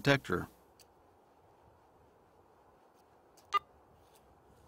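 A metal detector beeps in short electronic tones.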